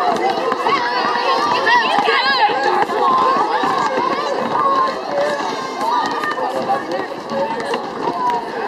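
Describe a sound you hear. Basketballs bounce on the pavement.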